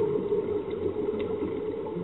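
Air bubbles from a scuba diver gurgle loudly underwater.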